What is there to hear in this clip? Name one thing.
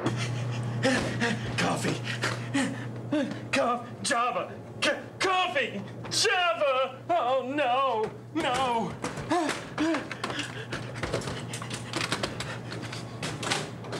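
A man bangs his hands against a machine.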